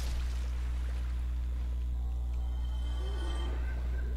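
A sword strikes with a clash.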